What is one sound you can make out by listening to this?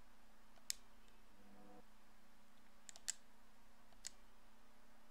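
Menu selections click sharply a few times.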